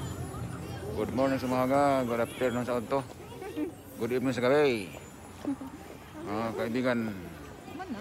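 A woman talks close to the microphone.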